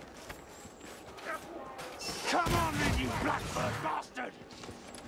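Blades clash and strike in a close fight.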